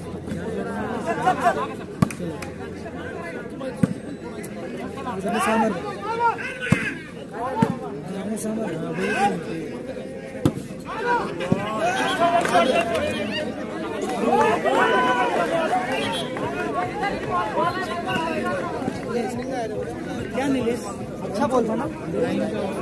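A crowd of men shouts and cheers loudly outdoors.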